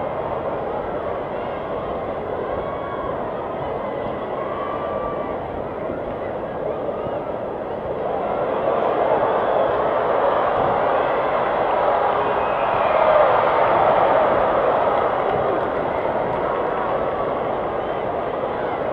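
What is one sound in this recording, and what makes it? A large stadium crowd murmurs and chatters outdoors.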